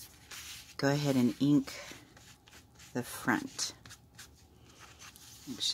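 A sponge dauber pats softly on ribbon, again and again.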